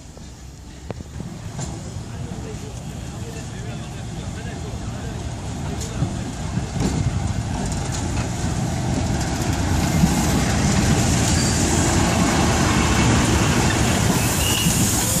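A diesel locomotive rumbles closer, growing louder as it passes.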